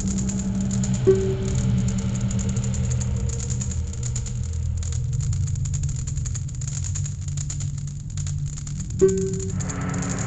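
A short electronic chime sounds twice.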